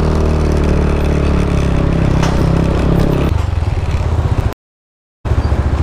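A motorcycle engine rumbles close by as it rolls slowly forward.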